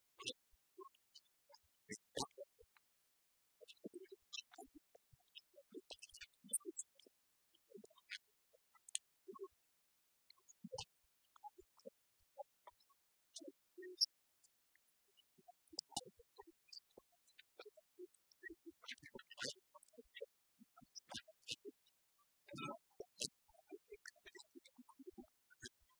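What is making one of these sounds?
Keys click on laptop keyboards.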